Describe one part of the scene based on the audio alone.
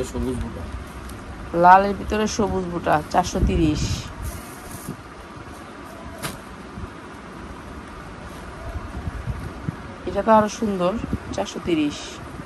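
Cloth rustles softly as it is unfolded and smoothed.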